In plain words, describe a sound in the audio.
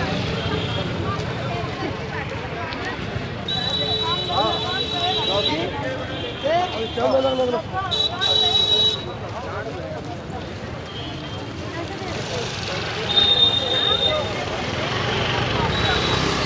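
Motorbike engines hum and pass by.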